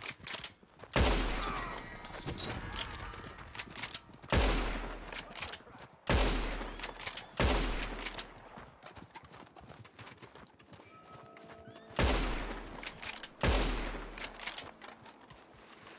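Rifle shots fire loudly, each followed by a ringing echo.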